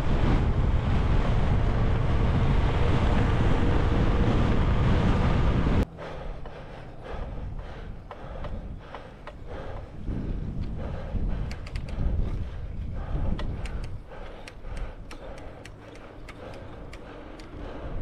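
Bicycle tyres hum on pavement.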